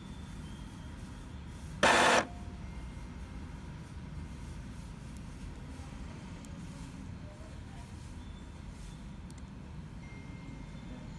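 A printer's mechanism hums and whirs quietly.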